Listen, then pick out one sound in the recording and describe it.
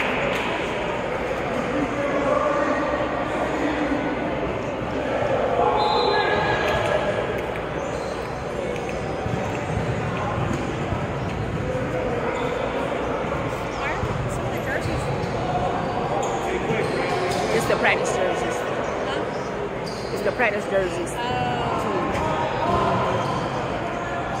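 A crowd of people talks and calls out in a large echoing gym.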